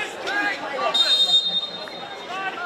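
A referee blows a sharp whistle on an outdoor field.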